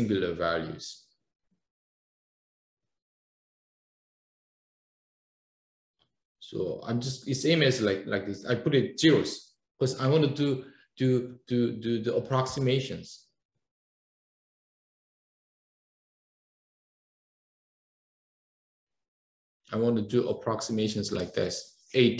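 A man speaks calmly into a microphone, explaining with pauses.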